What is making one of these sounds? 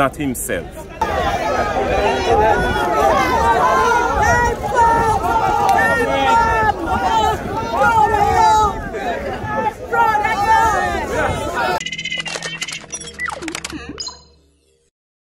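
A crowd of men and women chatter and cheer loudly.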